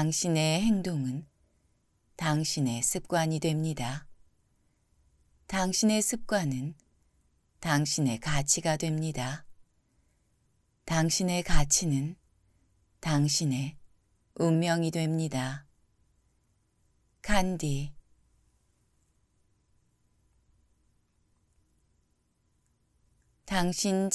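A man reads out calmly and closely into a microphone, with pauses between phrases.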